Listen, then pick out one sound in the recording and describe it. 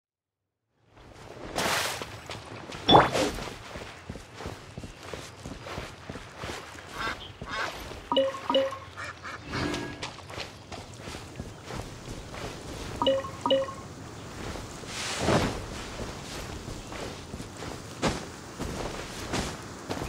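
Footsteps run over grass and sand.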